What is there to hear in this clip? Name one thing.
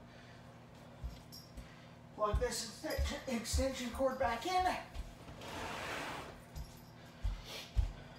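Footsteps thud on a floor indoors.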